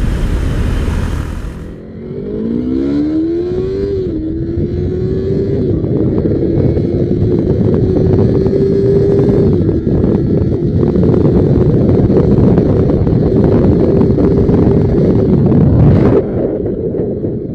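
A motorcycle engine revs up and roars at high speed.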